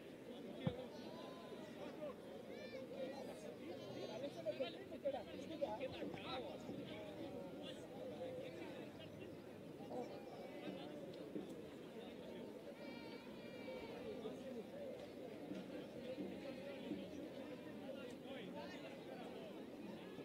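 A crowd of spectators murmurs and chatters in the open air.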